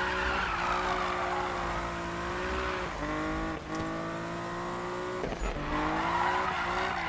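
A sports car engine roars at high revs, shifting gears.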